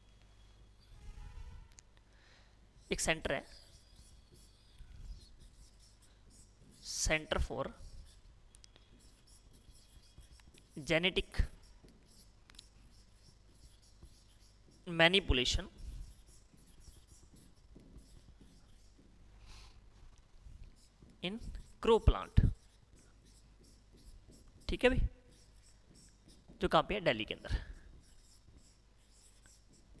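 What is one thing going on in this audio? A marker squeaks on a board.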